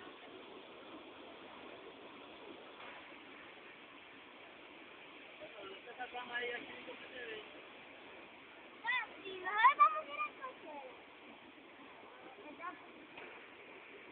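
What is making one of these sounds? A waterfall rushes and splashes steadily outdoors.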